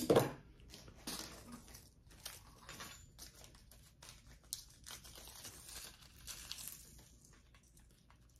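Fabric strap rustles as it is handled.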